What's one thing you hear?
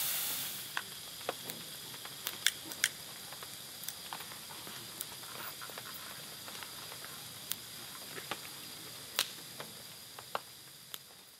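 A campfire crackles and pops nearby.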